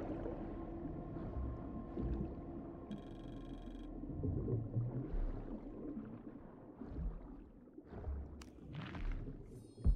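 Water swirls and churns, muffled, as a swimmer moves underwater.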